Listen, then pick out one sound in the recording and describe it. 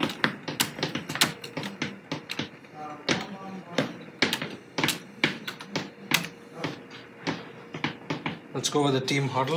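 Computer keys clatter quickly under typing fingers.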